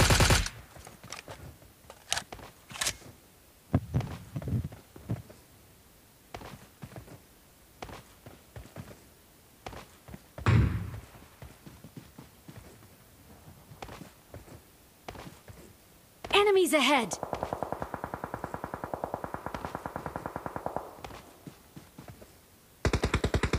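Footsteps crunch over grass and rock.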